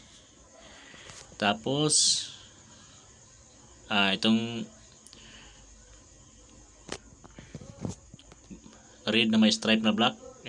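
A plastic wire connector clicks into a socket.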